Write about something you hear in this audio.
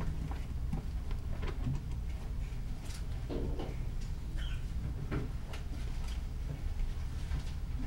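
Book pages rustle.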